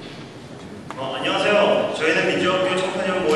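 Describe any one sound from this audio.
A young man speaks through a microphone and loudspeaker in a large echoing hall.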